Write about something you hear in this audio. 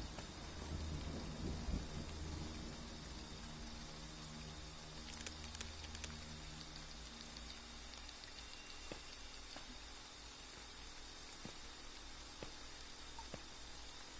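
Steady rain falls outdoors.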